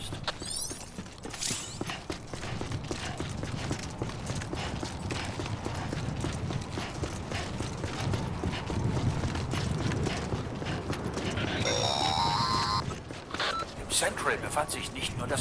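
Footsteps run quickly over hard pavement.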